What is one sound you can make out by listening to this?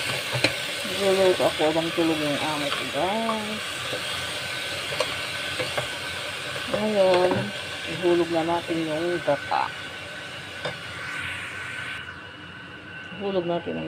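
A wooden spoon scrapes and stirs against a metal pot.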